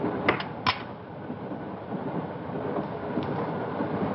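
Glass items clink together on a table.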